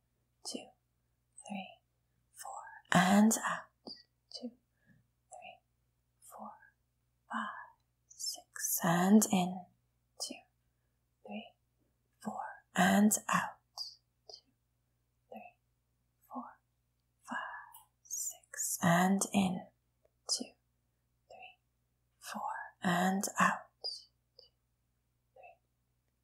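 A young woman speaks calmly and slowly into a close microphone, with long pauses.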